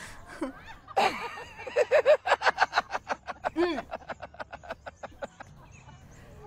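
A young woman laughs in quick bursts.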